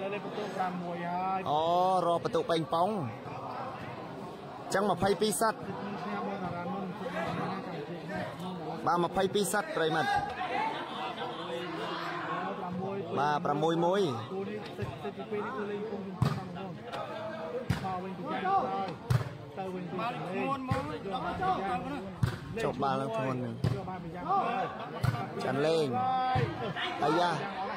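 A large crowd of men and boys chatters and shouts outdoors.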